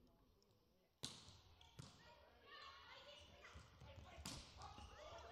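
A volleyball is struck sharply, with short thuds.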